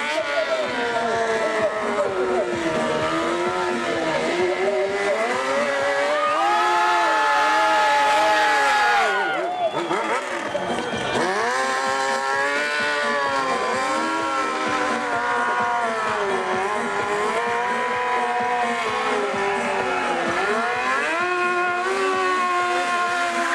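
A motorcycle engine revs loudly, rising and falling in pitch.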